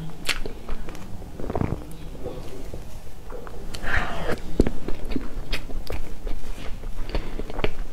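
A metal spoon scrapes into soft cake.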